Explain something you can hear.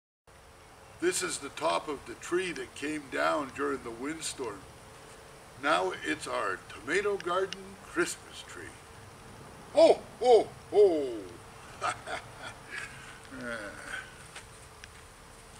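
An older man talks with animation close by.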